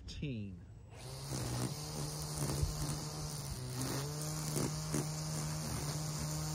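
A string trimmer whirs steadily, cutting grass.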